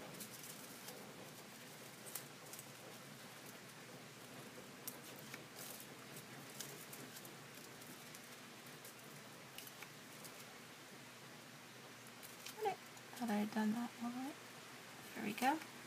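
Scissors snip and crinkle thin paper close by.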